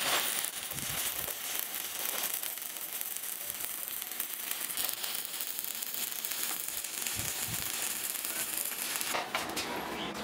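An electric welding arc crackles and hisses steadily.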